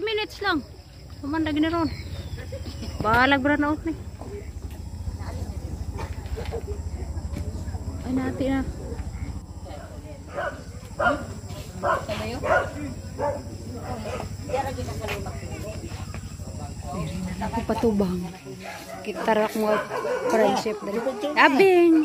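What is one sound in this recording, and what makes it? Children and young women chatter and call out nearby, with excited high squeals now and then.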